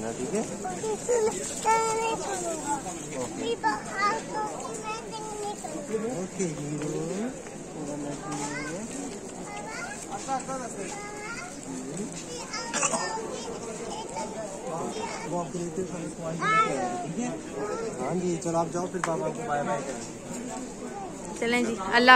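A young boy talks and squeals close by.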